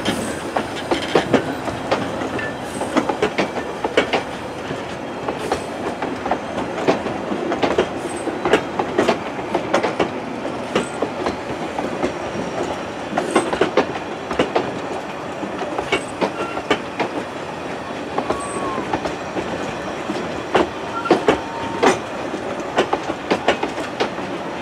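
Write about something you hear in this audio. A steam locomotive chuffs in the distance.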